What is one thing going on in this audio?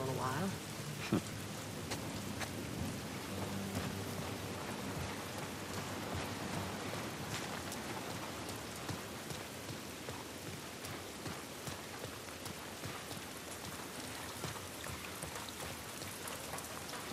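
Footsteps run quickly over wet ground.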